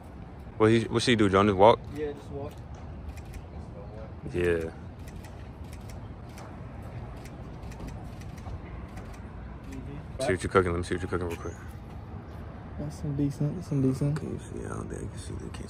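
A young man talks casually, close by.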